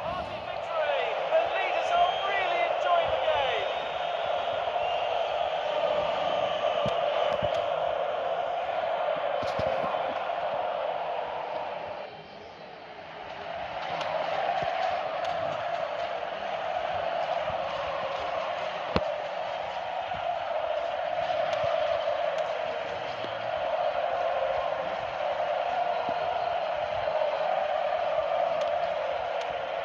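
A stadium crowd roars steadily throughout a football match.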